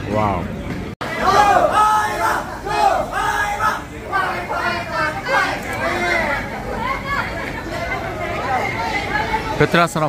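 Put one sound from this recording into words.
A crowd of men talk and laugh loudly nearby.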